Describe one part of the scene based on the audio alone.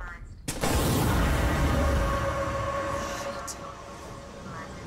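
Fire roars loudly, then fades.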